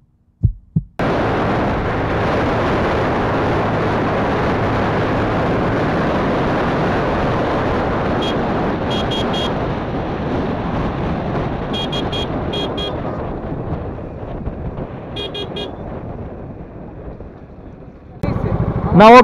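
Wind roars past a motorcycle rider at high speed.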